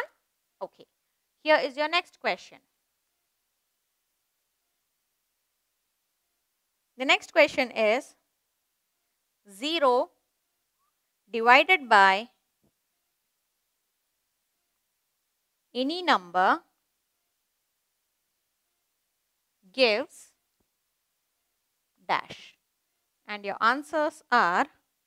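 A woman speaks clearly and calmly in short phrases, close to a microphone, with pauses between them.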